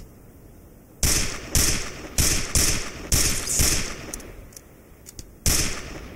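A hand-held tool swings with loud whooshing bursts in quick succession.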